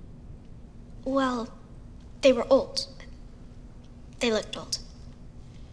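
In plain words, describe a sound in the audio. A young girl speaks quietly nearby.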